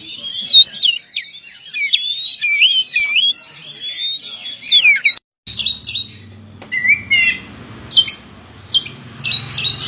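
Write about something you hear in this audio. A songbird sings loud, varied whistling phrases close by.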